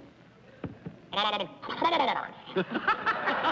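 A man speaks with good humour into a microphone.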